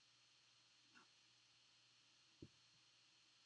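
A card slides into a hard plastic holder with a faint click.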